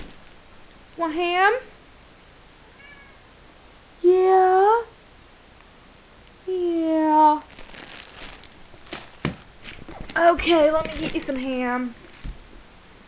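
A cat meows loudly, close by, several times.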